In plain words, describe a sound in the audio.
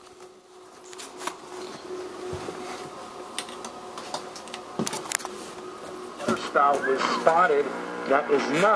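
A television news broadcast plays faintly through a small speaker.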